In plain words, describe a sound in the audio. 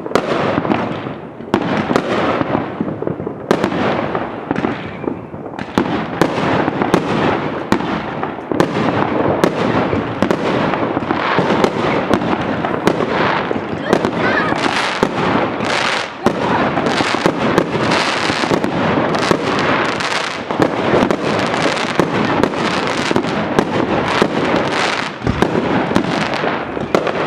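Fireworks bang and crackle loudly, over and over.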